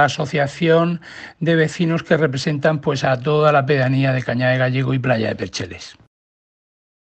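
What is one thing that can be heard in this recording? A man speaks calmly and clearly, heard close up through a microphone.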